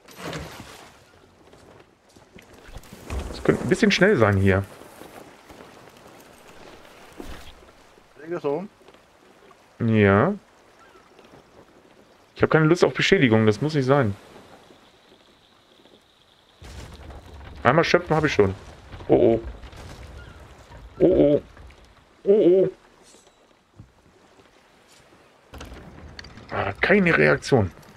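Gentle waves lap against a wooden ship.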